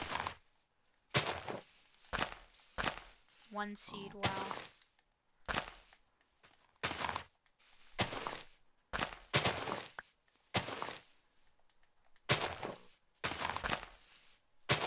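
Dirt and grass crunch in short, repeated bursts as blocks are dug.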